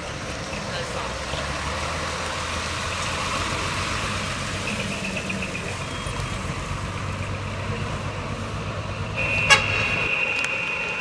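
A truck engine rumbles as it drives slowly past.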